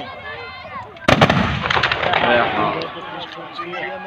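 A firecracker bangs loudly, followed by crackling pops.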